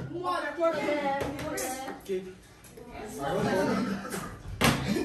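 Young men and women talk with animation nearby.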